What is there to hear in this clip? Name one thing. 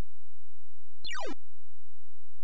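A video game gives a quick electronic tone that falls sharply in pitch.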